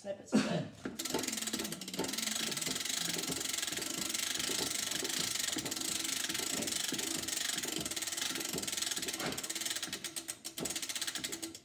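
An old phonograph plays a cylinder recording through heavy surface hiss.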